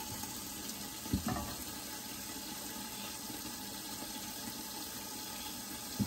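Oil pours into a pan.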